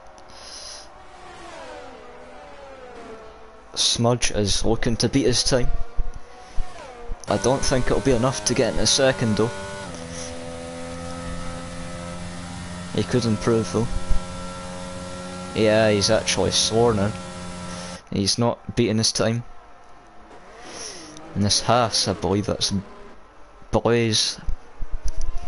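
A racing car engine whines at high revs, rising and falling as it shifts gears.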